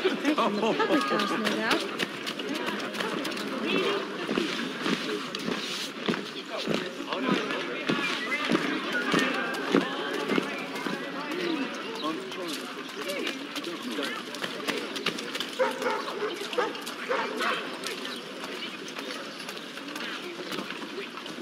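Footsteps hurry over cobblestones.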